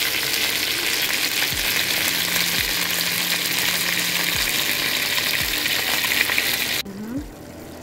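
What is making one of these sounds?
Chicken sizzles loudly as it fries in a hot pan.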